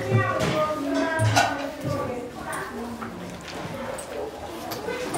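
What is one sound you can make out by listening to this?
A young child speaks close by.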